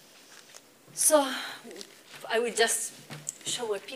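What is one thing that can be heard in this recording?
A young woman speaks calmly into a clip-on microphone.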